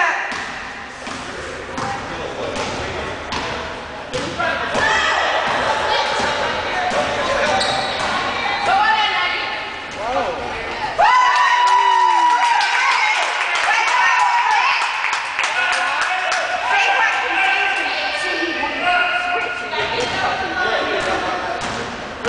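A basketball bounces on a wooden floor in a large echoing gym.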